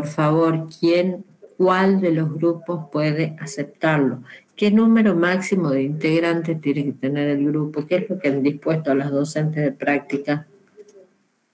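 A woman speaks steadily through an online call.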